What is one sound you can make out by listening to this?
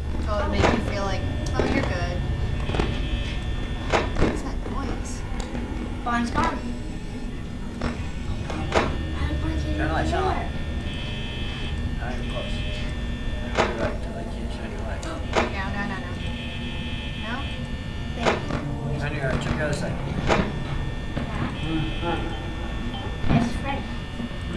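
Sharp mechanical clicks and thuds sound now and then.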